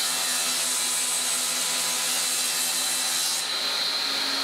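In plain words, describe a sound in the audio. A table saw cuts through wood with a high, steady whine.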